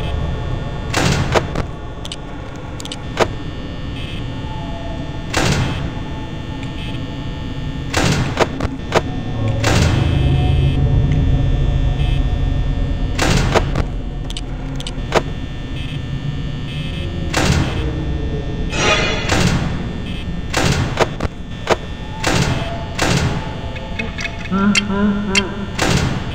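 Doors slam shut with heavy metallic clanks.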